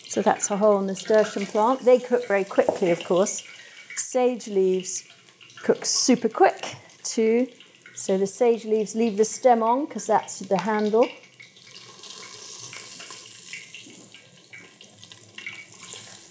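A spoon clinks against a pot.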